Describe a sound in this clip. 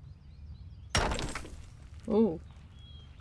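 A stone wall crumbles and breaks apart.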